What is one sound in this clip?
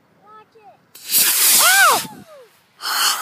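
A model rocket launches with a sharp rushing whoosh.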